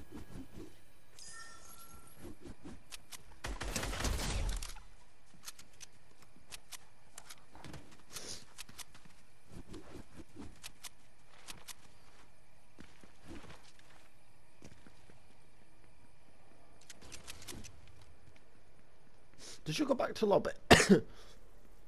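Quick footsteps patter along the ground.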